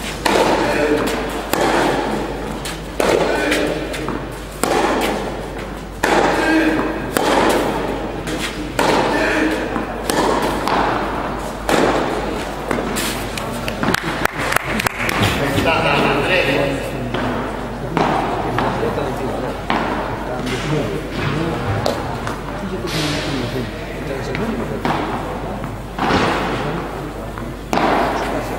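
Tennis rackets strike a ball back and forth, echoing in a large hall.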